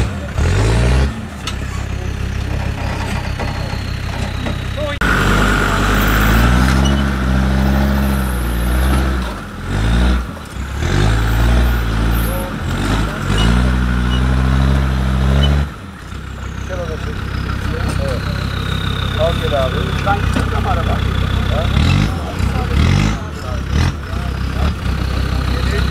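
A vehicle's engine rumbles and revs hard, rising and falling in pitch.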